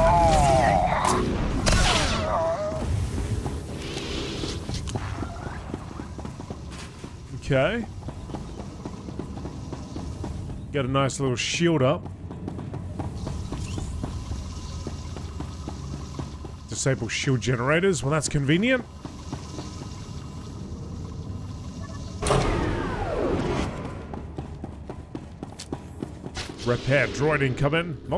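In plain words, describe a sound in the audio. Energy blades hum and clash in a fight.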